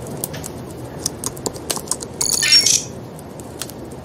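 Keys clatter on a keyboard in quick taps.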